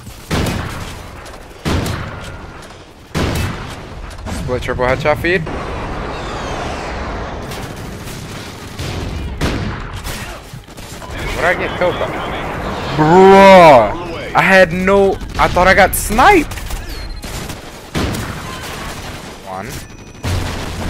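A sniper rifle fires loud, sharp shots one at a time.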